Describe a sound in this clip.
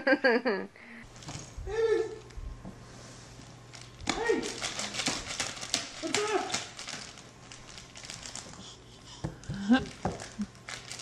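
Toddlers babble and squeal.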